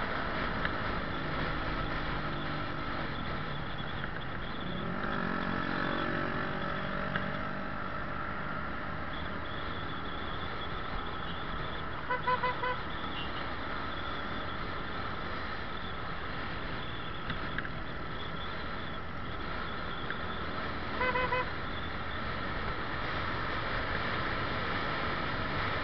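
Wind rushes past in a steady roar.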